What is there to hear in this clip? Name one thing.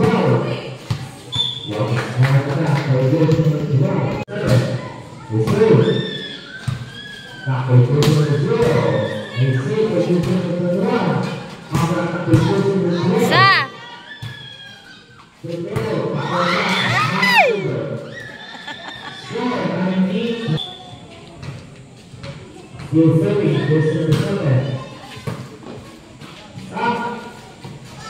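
A crowd of young women and girls chatters and shouts.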